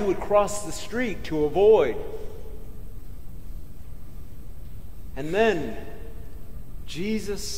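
A middle-aged man preaches with animation through a microphone in an echoing hall, pausing between phrases.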